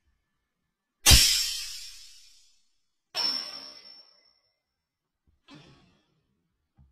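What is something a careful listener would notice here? A handheld toy gun fires several sharp, loud bangs that ring out and fade.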